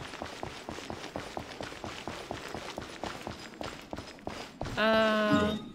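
Footsteps patter quickly in a video game.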